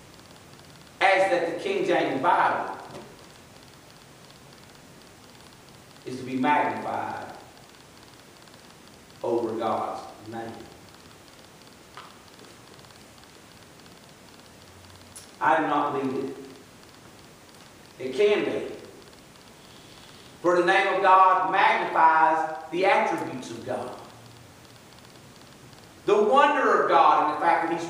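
An elderly man speaks slowly and deliberately into a microphone, with pauses between phrases, in a room with a slight echo.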